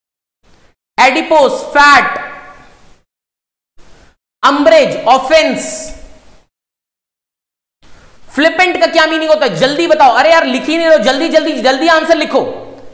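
A young man speaks with animation into a close microphone, in bursts with pauses.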